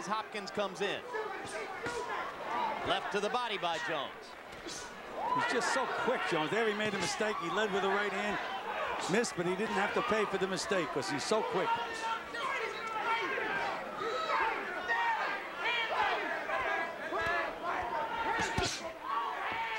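Boxing gloves thud against bodies.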